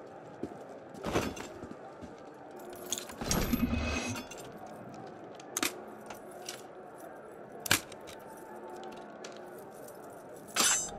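A lock's pins click and rattle as they are picked.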